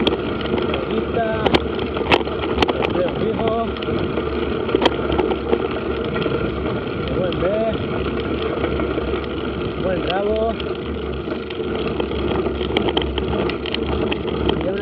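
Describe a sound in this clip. Tyres crunch and rumble over a rough gravel track.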